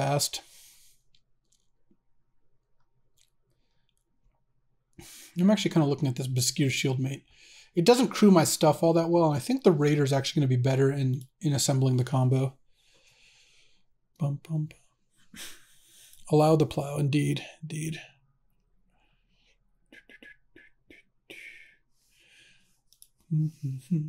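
A man talks calmly and with animation close to a microphone.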